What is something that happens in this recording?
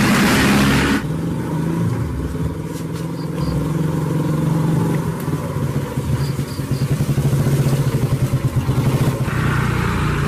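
A motorcycle engine putters as the motorcycle rides up and stops nearby.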